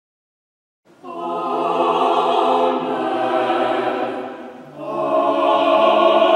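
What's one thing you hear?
A small choir sings slowly in a large echoing hall.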